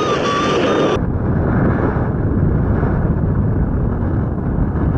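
Wind rushes loudly past in flight.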